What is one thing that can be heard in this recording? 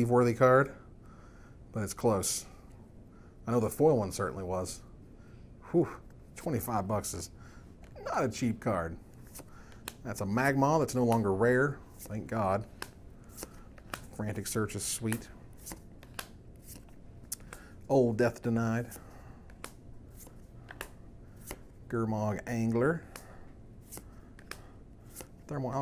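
Playing cards slide and tap softly against each other.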